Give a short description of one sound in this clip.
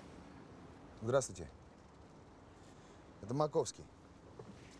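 A middle-aged man speaks in short phrases into a mobile phone.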